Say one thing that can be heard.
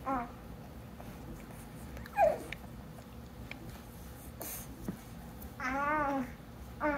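A baby fusses with short whining sounds.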